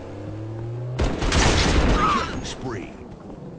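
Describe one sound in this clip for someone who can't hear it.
An explosion booms loudly and rumbles.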